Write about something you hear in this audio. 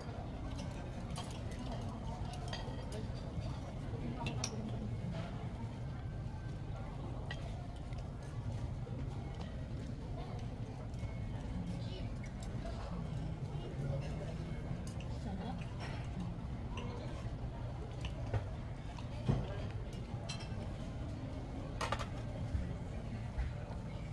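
Cutlery clinks and scrapes against plates.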